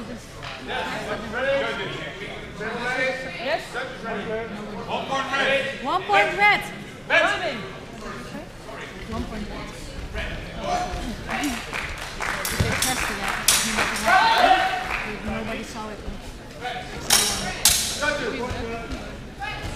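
Voices of a crowd of men and women chatter throughout a large echoing hall.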